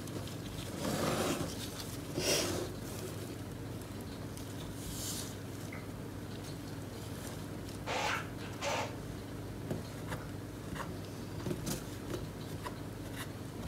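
A stick scrapes and stirs a thick mixture in a plastic cup.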